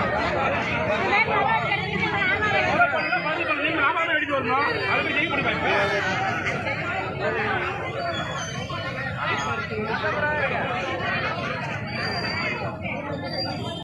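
Many men talk over one another close by.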